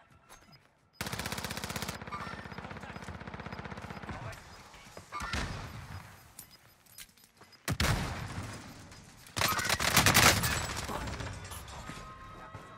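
Gunfire from a game rattles in quick bursts.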